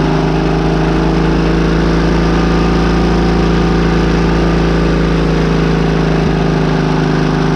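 A diesel engine revs up briefly and settles back.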